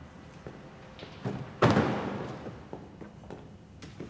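A car door opens and shuts.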